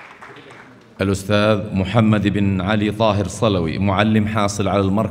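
A man speaks loudly and with animation through a loudspeaker in a large hall.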